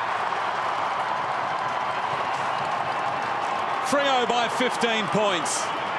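A large crowd cheers and roars in a big open stadium.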